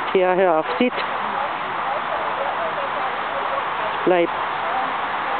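A young woman gives short commands to a dog nearby.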